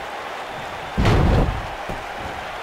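A heavy body slams onto a wrestling ring mat with a loud thud.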